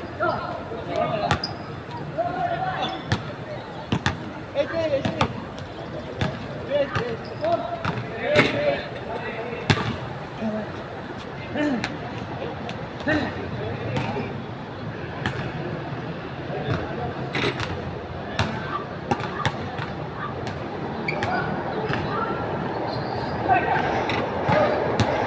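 Men talk and call out to each other across an open court.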